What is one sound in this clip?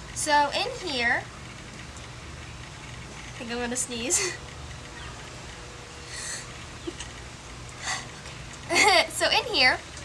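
A young girl talks brightly and with animation, close by.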